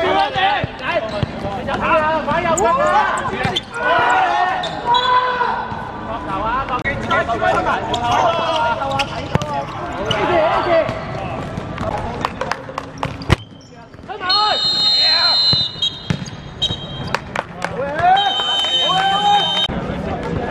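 Young men shout to each other on an outdoor court.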